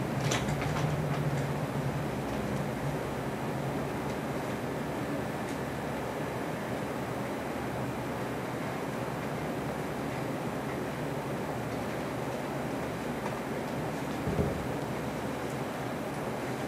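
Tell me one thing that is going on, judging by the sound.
An elderly man chants in a low, steady voice through a microphone.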